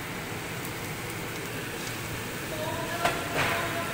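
Chopsticks scrape and clack against a pan.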